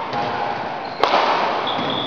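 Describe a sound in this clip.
A badminton racket smacks a shuttlecock in an echoing hall.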